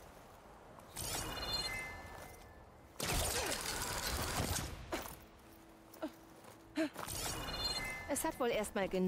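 Video game effects whoosh and clatter in short bursts.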